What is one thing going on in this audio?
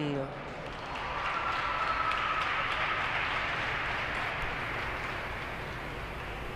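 A crowd applauds in a large echoing arena.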